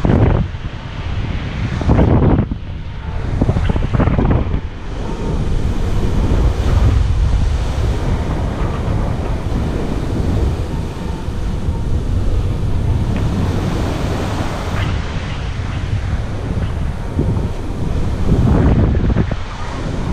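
Wind rushes and buffets loudly past a microphone outdoors.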